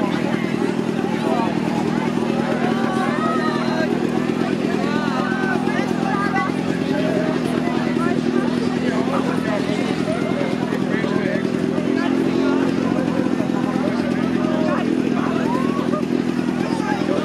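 A crowd of people chatters and shouts around close by.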